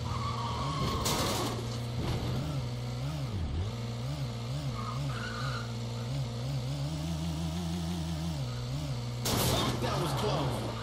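A car crashes with a loud bang and shattering glass.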